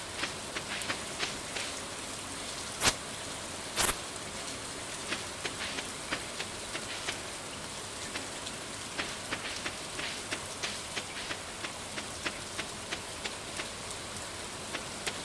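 Light footsteps patter quickly and steadily along a dirt path.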